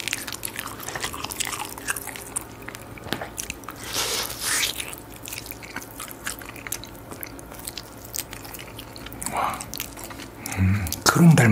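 A young man chews and bites into crispy food close by.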